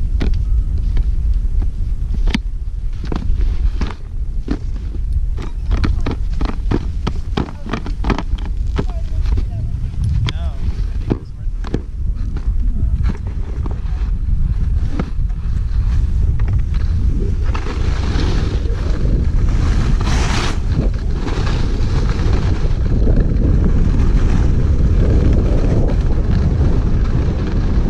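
Wind rushes past, loud and blustery.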